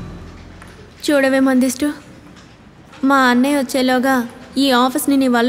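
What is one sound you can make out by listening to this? A young woman speaks close by, in an emotional tone.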